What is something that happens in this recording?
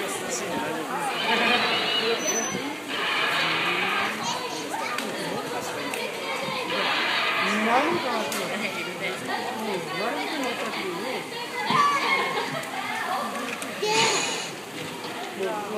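A dinosaur model roars and hisses loudly in bursts.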